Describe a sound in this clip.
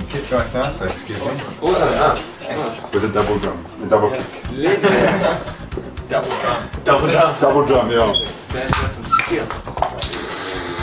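Several young men talk and laugh together close by.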